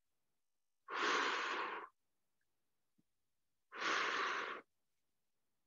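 A man breathes out hard in long, loud breaths.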